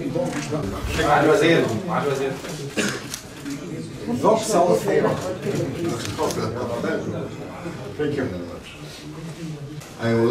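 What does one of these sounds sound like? Men talk nearby in a murmur.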